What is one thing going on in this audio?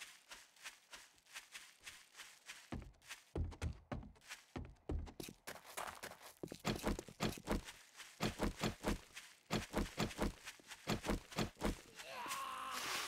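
Footsteps crunch quickly over grass and gravel.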